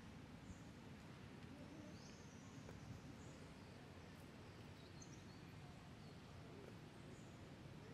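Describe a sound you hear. Monkeys squeak and chatter softly nearby.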